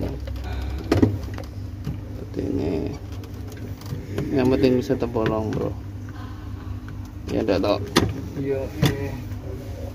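A screwdriver taps and clicks against metal.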